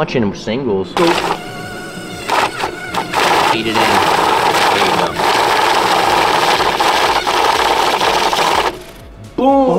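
A money counter whirs and riffles rapidly through banknotes.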